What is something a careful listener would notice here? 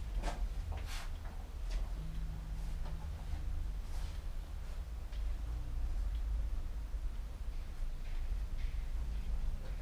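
A bicycle tyre rubs and flexes.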